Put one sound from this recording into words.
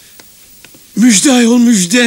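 A middle-aged man exclaims loudly at close range.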